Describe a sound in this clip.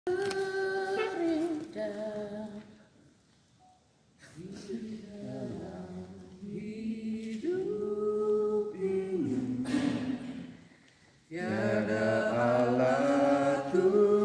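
A group of men and women sing together in a large echoing hall, with pauses between lines.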